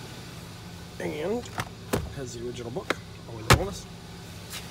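A glove box latch clicks and the lid drops open.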